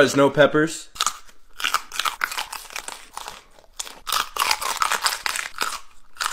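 A young man bites and crunches loudly on crisp food.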